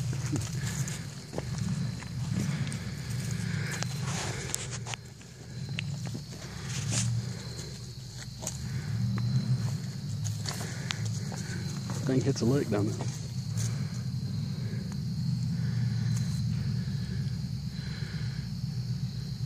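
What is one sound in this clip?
Footsteps crunch on a dirt and stone trail.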